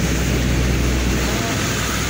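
An auto-rickshaw drives by on a wet road.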